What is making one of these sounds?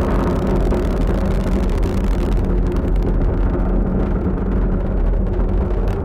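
A rocket engine roars and rumbles deeply and steadily.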